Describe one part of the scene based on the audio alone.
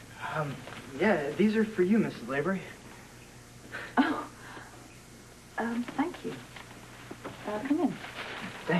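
A woman replies quietly.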